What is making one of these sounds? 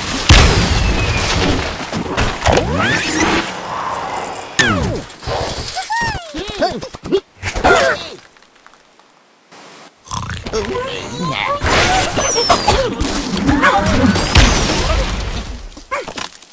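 Cartoon blocks crash and clatter in a video game.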